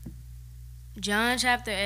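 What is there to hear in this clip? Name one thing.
A young boy speaks into a microphone over a loudspeaker.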